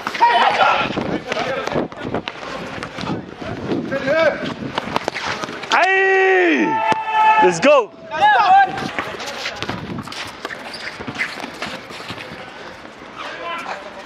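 Young men shout to each other during a game outdoors.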